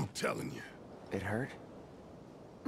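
A young man speaks quietly and flatly.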